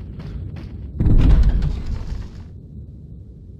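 A heavy wooden door bursts open with a loud thud.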